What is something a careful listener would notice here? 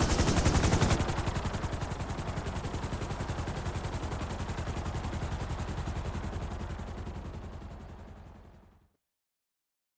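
A helicopter's rotor thumps loudly and slowly fades away.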